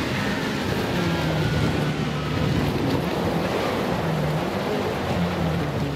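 Tyres rumble over rough grass and gravel.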